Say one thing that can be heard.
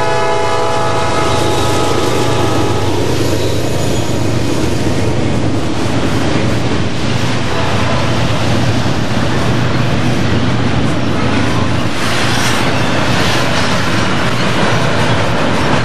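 Wheels of a freight train clatter and rumble on steel rails.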